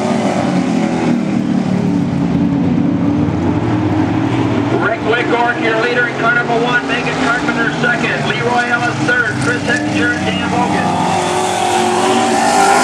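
Race car engines roar steadily around a track.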